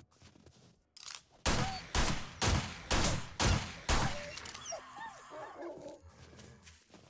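Wolves snarl and yelp.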